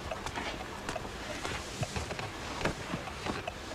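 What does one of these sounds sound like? An elderly woman lowers herself onto a wooden chair with soft knocks and creaks.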